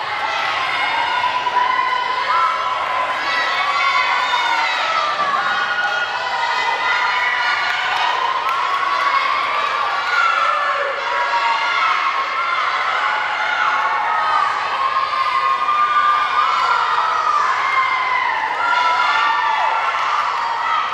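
A crowd of young people cheers and shouts in a large echoing hall.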